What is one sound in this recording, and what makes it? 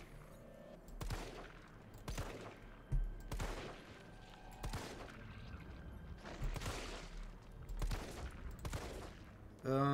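Gunshots fire one after another at a steady pace.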